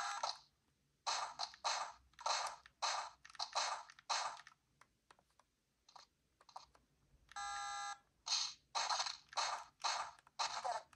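Electronic game sound effects burst out in short, quick blasts.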